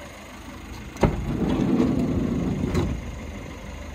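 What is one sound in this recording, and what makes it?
A van's sliding side door rolls open with a clunk.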